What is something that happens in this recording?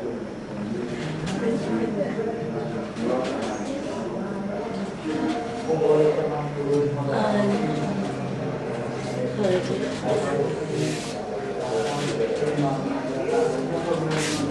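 Clothes rustle as they are sorted and folded.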